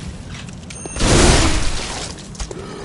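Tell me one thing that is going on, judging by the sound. A blade slashes with a sharp whoosh.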